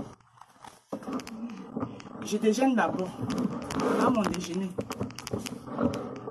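A woman talks with animation close to the microphone.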